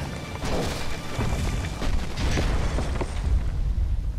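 Debris clatters and smashes as it falls.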